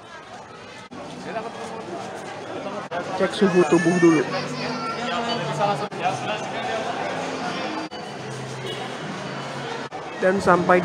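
A crowd of people chatters nearby.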